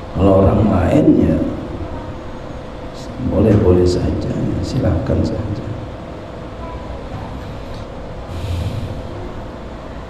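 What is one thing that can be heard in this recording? A man speaks calmly through a microphone, with a slight echo.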